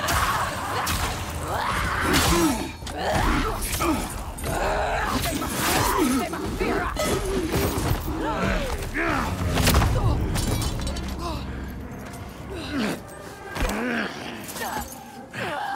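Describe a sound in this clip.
A young woman grunts and cries out with effort.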